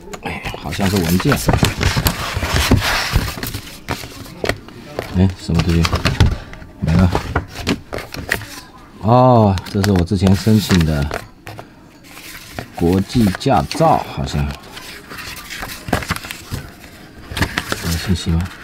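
Paper rustles as a booklet is handled and its pages are turned.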